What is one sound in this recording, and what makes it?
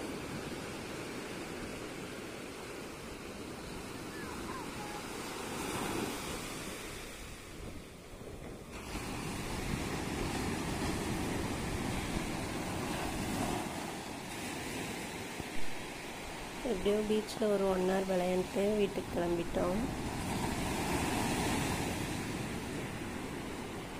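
Waves break and wash up onto the shore steadily.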